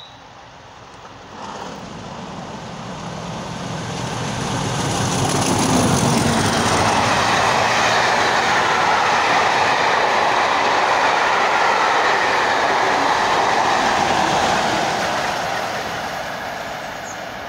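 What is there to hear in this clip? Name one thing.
A diesel train approaches from a distance, growing louder, and roars past close by.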